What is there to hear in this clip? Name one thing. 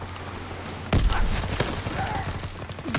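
Gunfire rattles close by.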